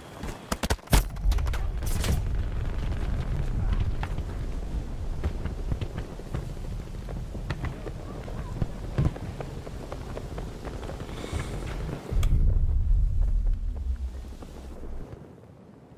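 Explosions rumble low and deep.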